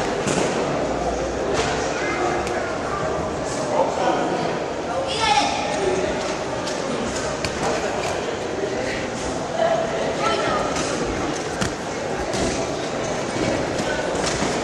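A crowd of spectators chatters and calls out in an echoing sports hall.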